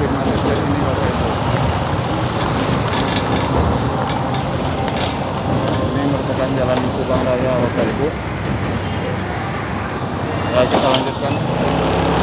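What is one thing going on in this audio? A vehicle's engine rumbles steadily while driving along a road.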